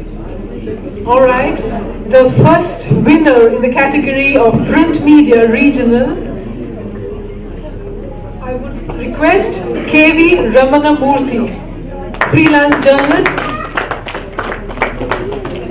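A woman speaks over a microphone and loudspeakers in a large hall, announcing.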